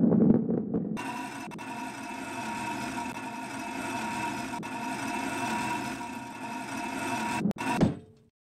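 A ball rolls along metal rails with a steady humming whir.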